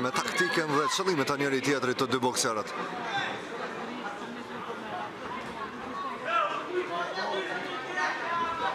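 Spectators shout and cheer loudly nearby.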